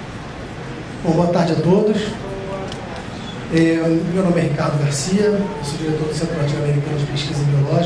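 A man speaks calmly into a microphone over a loudspeaker in an echoing room.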